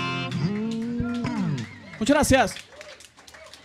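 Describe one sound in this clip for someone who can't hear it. An electric guitar plays loud chords.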